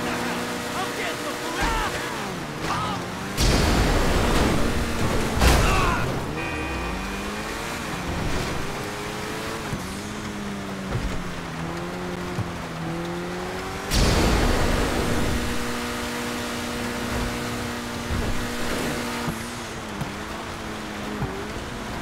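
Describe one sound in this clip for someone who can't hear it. Tyres hiss over snow.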